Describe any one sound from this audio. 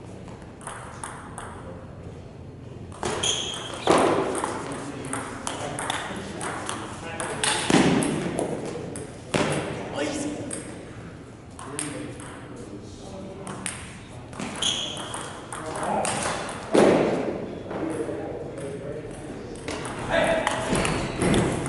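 Ping pong balls tap on tables nearby and echo in a large hall.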